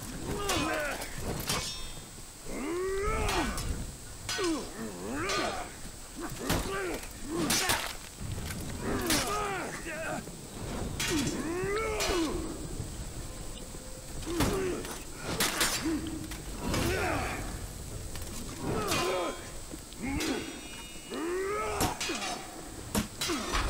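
Steel swords clash and ring again and again.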